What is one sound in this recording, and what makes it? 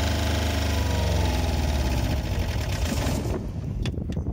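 A diesel generator engine slows down and stops.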